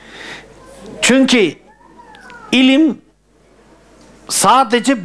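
An elderly man speaks slowly and with feeling into a close microphone.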